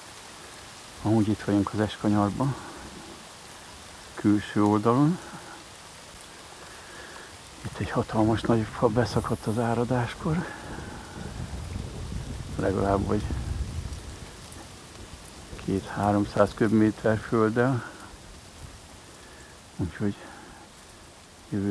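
Rain patters lightly on the surface of a river.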